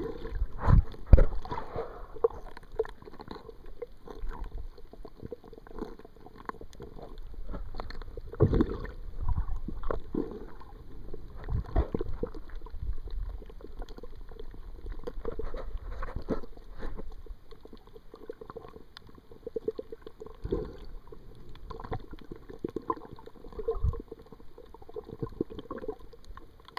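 Water gurgles and swishes in muffled bursts, heard from under the surface.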